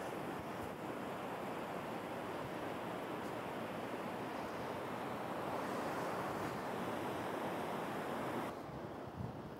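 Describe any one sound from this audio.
Waves wash and break on a shore.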